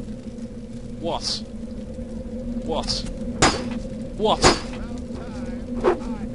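A young man speaks now and then into a close microphone.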